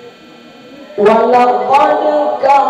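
A group of young girls suddenly begin chanting loudly together in an echoing hall.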